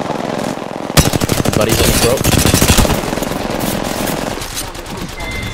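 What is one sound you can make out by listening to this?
Rapid gunfire bursts loudly.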